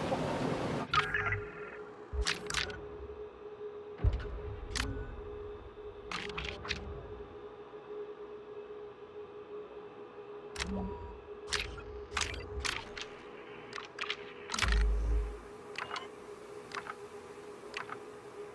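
Short interface clicks and soft chimes sound again and again as menu pages change.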